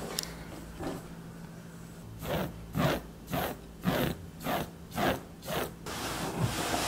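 A hand brushes and scratches at a rough fabric surface.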